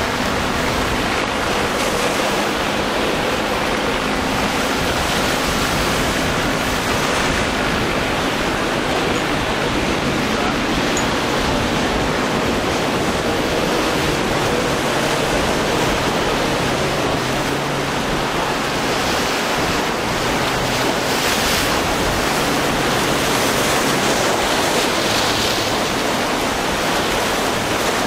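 A boat engine roars.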